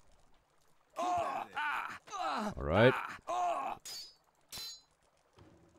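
Metal swords swing and clang together.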